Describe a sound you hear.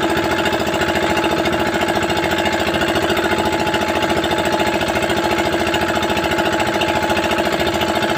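A man turns a wooden winch, winding rope onto its drum.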